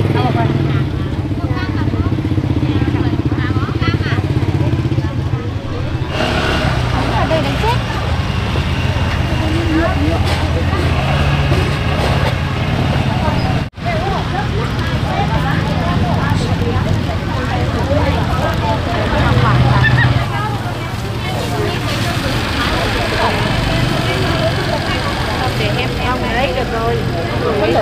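Women talk with each other in a lively way, close by.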